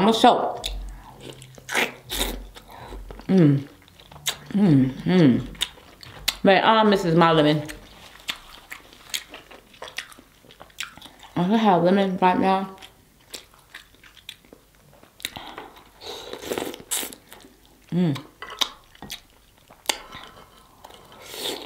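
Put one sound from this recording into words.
Crab shell cracks and crunches close by.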